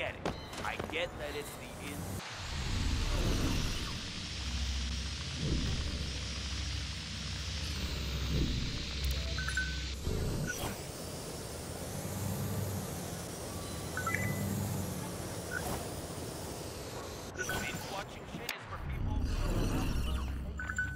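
A small drone whirs and buzzes steadily.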